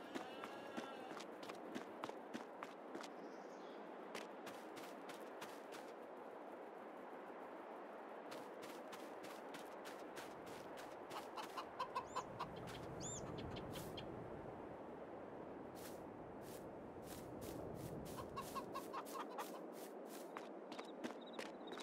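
Footsteps crunch steadily on gravel and concrete.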